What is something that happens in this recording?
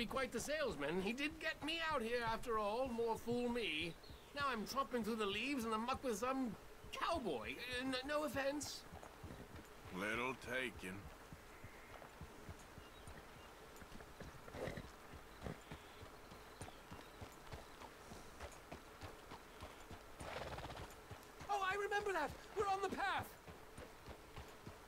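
A horse's hooves clop on a dirt track.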